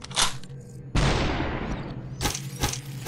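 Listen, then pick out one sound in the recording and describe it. A gun fires a shot.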